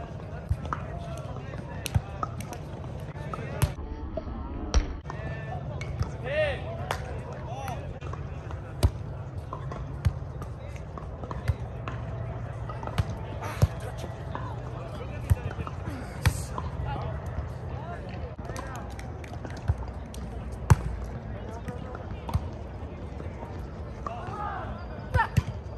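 Hands strike a volleyball.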